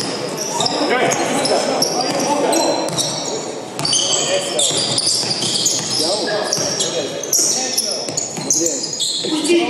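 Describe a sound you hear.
Sneakers squeak sharply on a hard court in an echoing hall.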